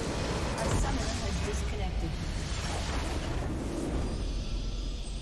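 A loud rumbling explosion booms and crackles.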